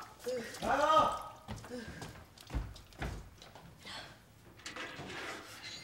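Water sloshes in a basin as a boy washes.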